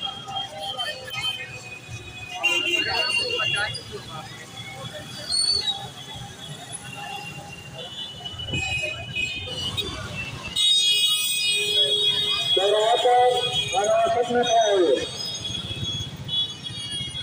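A busy crowd chatters nearby outdoors.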